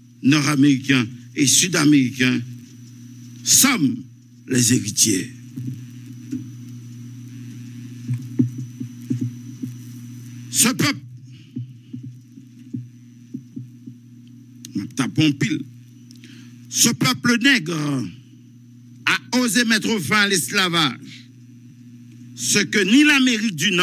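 A man shouts emotionally in bursts, close to a microphone.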